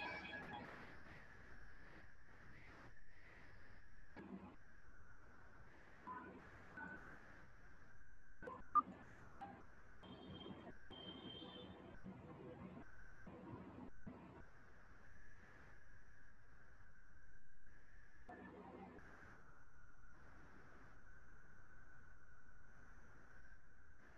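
A young man talks calmly through a computer microphone.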